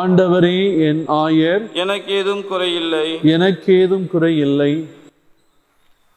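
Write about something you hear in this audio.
A middle-aged man chants loudly and steadily through a microphone.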